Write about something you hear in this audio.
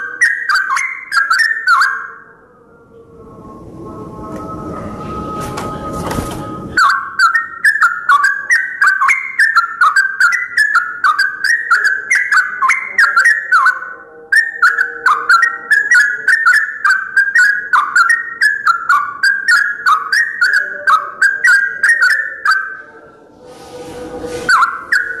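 A yellow-vented bulbul sings bubbling, chattering phrases.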